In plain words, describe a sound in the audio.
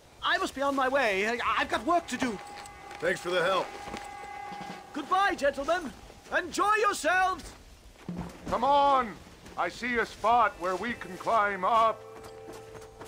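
A second man answers in a low voice.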